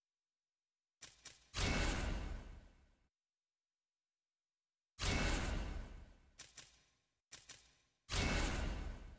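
Menu sound effects whoosh and chime as options are selected.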